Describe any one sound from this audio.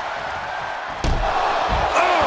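A body thuds heavily onto the floor.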